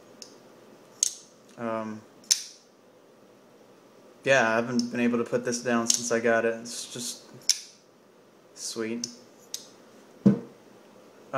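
A folding knife clicks as it is handled.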